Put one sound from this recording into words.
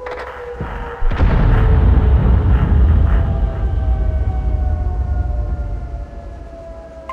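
A tank cannon fires with a heavy boom that rumbles away.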